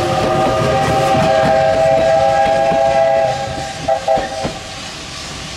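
A steam locomotive whistle blows a long, loud blast, then two short toots.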